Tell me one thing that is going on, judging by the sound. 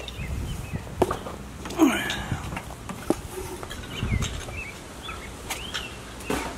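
Wooden furniture clatters and thuds as it is tossed onto a truck.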